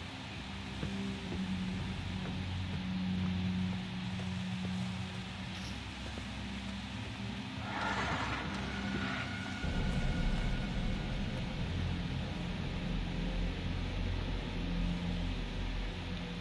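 Footsteps walk slowly on a rough floor.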